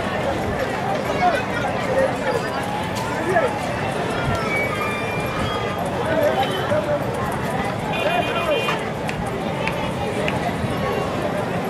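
A crowd of men and women chatters all around in a busy open-air bustle.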